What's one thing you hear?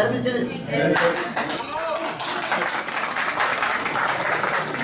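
Several people clap their hands together.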